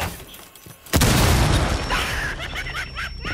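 A loud explosion blasts a door apart.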